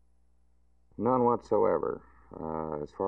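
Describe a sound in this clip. An older man speaks calmly and close into a microphone.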